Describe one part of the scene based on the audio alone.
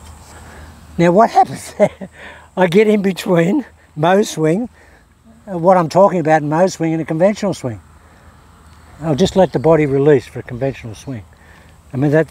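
A man speaks calmly up close, explaining.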